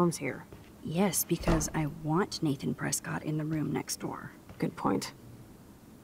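A second young woman answers calmly, close up.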